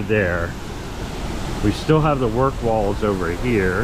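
Water splashes steadily down a waterfall.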